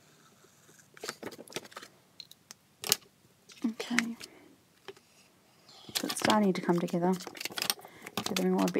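Paper rustles and slides as hands move a sheet on a table.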